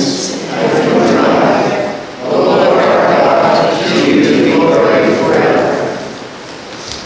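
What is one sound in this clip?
Several men pray aloud together in an echoing hall.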